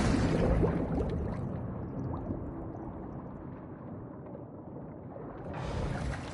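Muffled underwater sound surrounds the listener.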